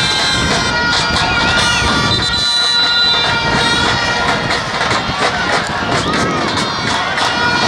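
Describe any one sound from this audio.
A large stadium crowd chants and cheers loudly outdoors.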